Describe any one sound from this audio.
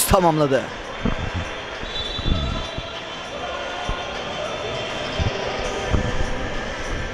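A basketball bounces on a wooden court in an echoing gym.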